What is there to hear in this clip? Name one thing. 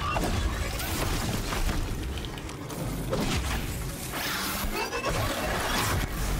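Video game combat effects crash and blast.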